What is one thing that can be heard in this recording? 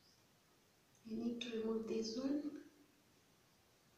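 A young woman speaks briefly and calmly, close to the microphone.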